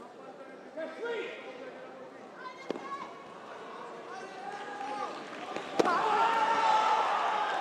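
Young men shout sharply as they strike.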